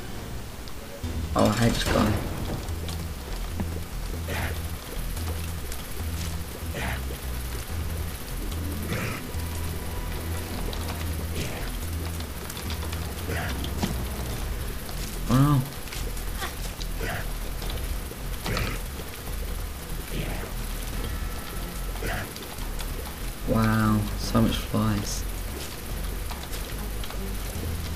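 Low, thumping game music plays with a steady beat.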